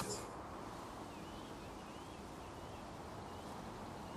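Footsteps fall on grass.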